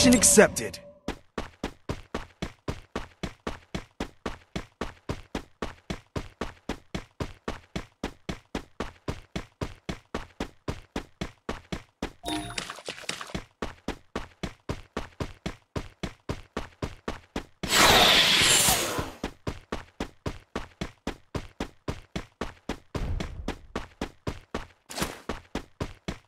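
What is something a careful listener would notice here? Quick footsteps run steadily over ground.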